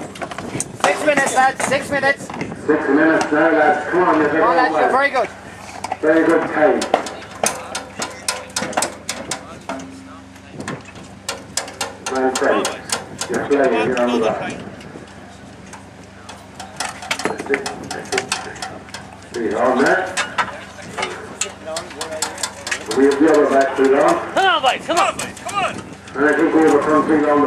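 Metal tools clink and clank against tractor parts.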